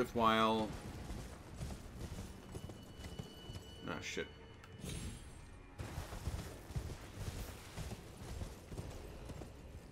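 A horse's hooves thud as it gallops over rough ground.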